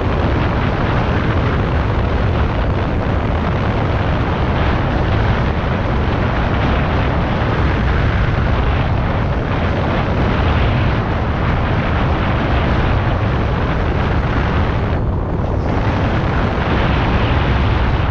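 Wind rushes loudly over a microphone.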